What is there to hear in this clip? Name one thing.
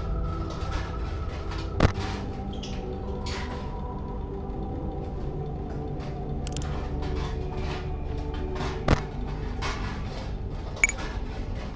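A low electronic hum and static drone steadily.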